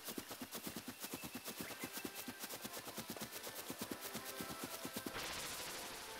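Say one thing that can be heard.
Quick light footsteps patter on grass.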